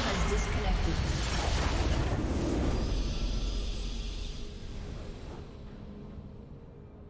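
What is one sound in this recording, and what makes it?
A magical explosion roars and crackles, then fades.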